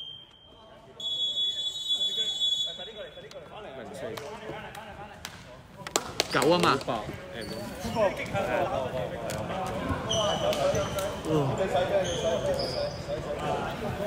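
Players' voices chatter and call out in an echoing gym.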